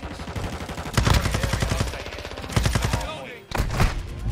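An automatic rifle fires rapid bursts.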